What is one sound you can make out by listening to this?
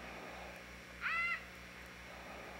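A child shouts far off outdoors.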